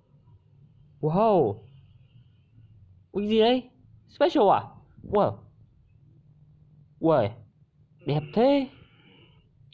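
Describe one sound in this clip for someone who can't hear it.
A young woman speaks brightly.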